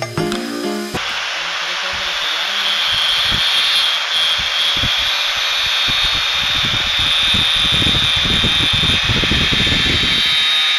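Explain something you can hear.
An angle grinder motor whines loudly and steadily.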